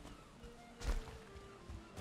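A boar grunts.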